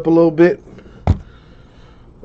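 Cardboard boxes are set down with a soft thud.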